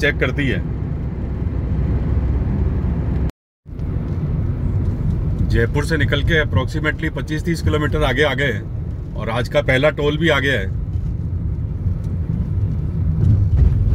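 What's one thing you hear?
A car engine and tyres rumble low and steadily on the road.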